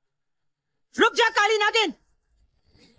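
A young woman cries out loudly and sharply.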